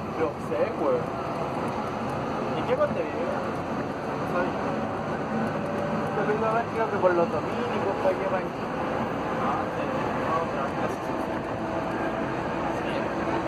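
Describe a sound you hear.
A moving vehicle hums and rumbles steadily from inside.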